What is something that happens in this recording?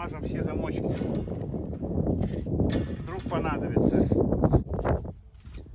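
A metal gate lock rattles and clicks.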